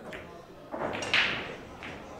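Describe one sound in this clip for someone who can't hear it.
Balls knock together and roll across the table.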